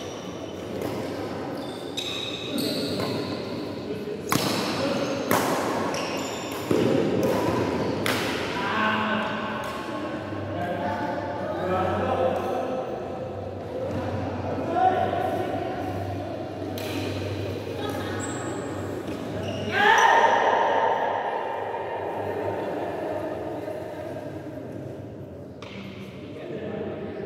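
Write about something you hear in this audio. Sports shoes squeak on the court floor.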